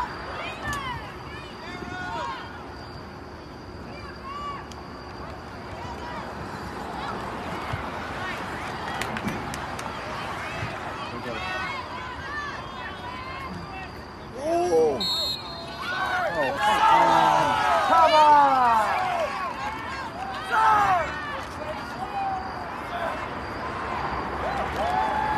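Young women shout to each other from across an outdoor field.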